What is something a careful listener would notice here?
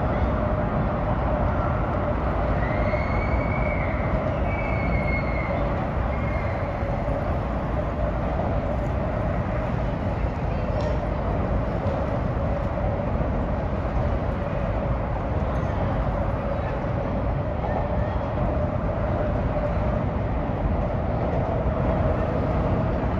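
Wind rumbles steadily against the microphone outdoors.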